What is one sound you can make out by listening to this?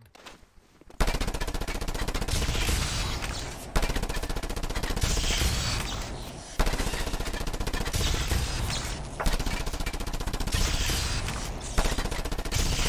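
Loud explosions boom one after another.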